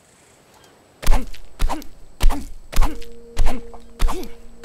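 A stone pick strikes rock in repeated heavy knocks.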